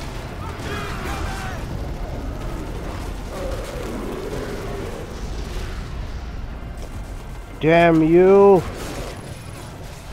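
Heavy blows thud and crash during a fight.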